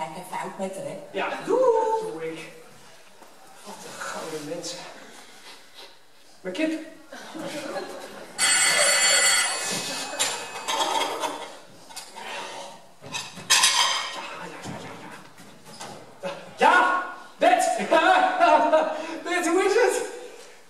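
A man speaks loudly and with animation in an echoing hall.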